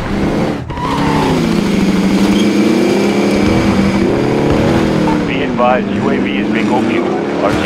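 An off-road vehicle's engine roars and revs as it drives over rough ground.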